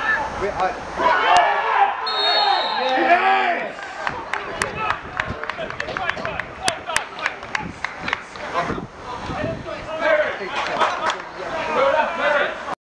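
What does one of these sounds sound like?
Men shout and call out to one another across an open outdoor pitch.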